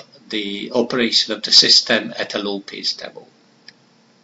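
An older man speaks calmly into a microphone over an online call.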